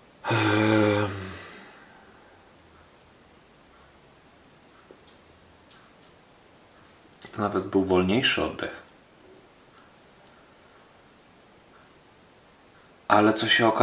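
A man speaks close by in short bursts, with pauses between.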